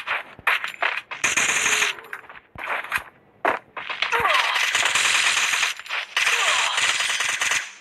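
Rapid gunshots rattle in quick bursts.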